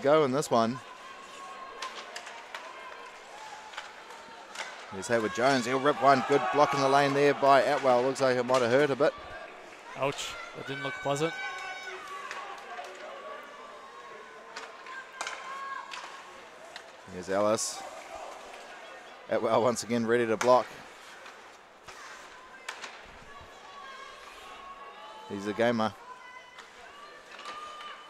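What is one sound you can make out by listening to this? Hockey sticks clack against a puck and against each other.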